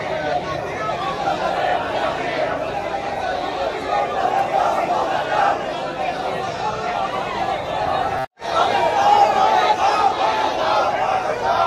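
A large crowd of men chants and shouts outdoors.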